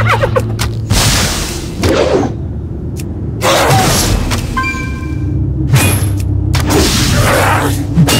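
Arrows are fired from a bow with sharp whooshing bursts.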